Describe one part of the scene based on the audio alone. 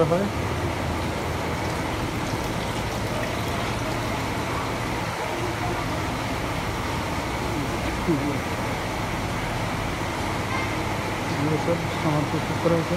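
Ceiling fans hum steadily.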